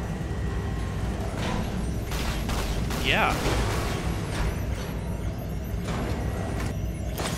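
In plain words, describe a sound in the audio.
Machines hum steadily and low.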